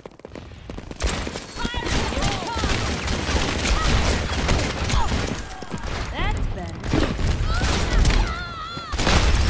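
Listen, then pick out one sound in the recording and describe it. A gun fires rapid shots at close range.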